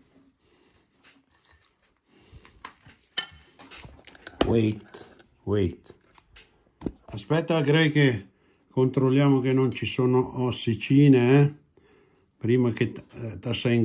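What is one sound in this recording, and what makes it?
A knife scrapes and clinks against a plate.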